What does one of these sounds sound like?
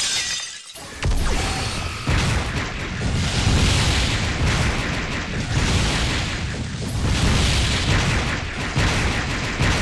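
Video game explosions boom and crackle repeatedly.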